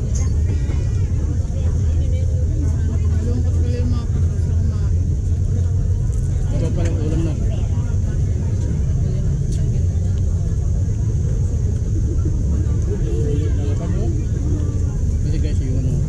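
A spoon scrapes and taps a plastic bowl.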